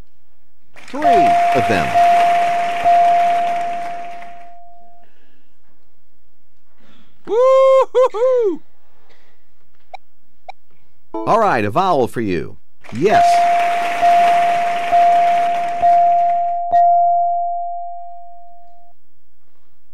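A bright electronic chime rings again and again as letters light up.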